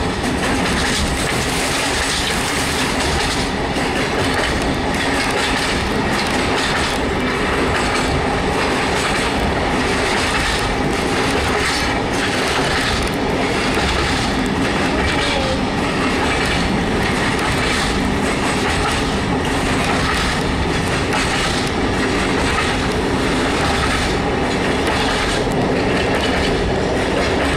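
A train rumbles and rattles steadily along the tracks.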